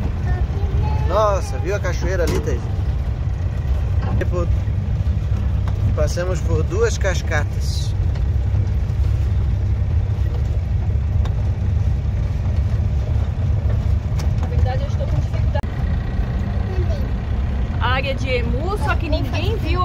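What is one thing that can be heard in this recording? A man talks with animation close by, over the engine.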